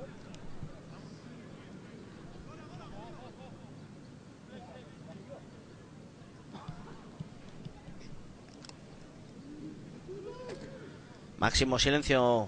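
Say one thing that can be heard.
A crowd murmurs softly in the open air.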